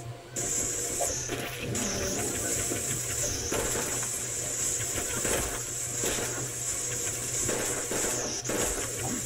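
Game guns fire rapidly in a chaotic fight.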